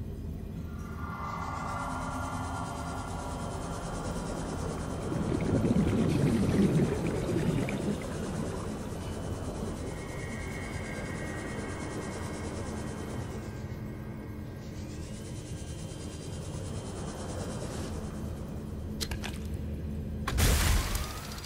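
A small submarine's engine hums steadily underwater.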